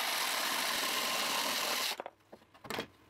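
A jigsaw buzzes loudly as it cuts through wood.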